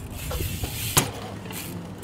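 A bike lands with a sharp clack.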